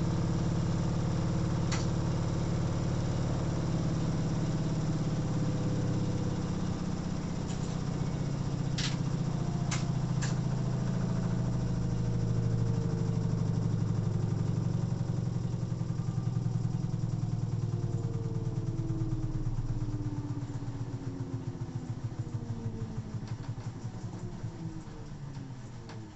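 A washing machine hums and rumbles steadily as its drum turns.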